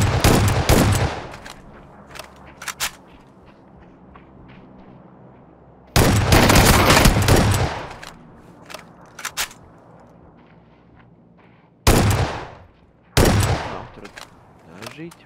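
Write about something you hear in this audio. Rifle gunfire crackles in loud bursts, echoing briefly.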